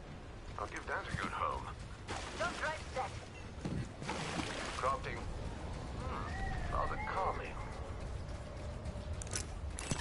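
Water splashes as footsteps wade through shallow water.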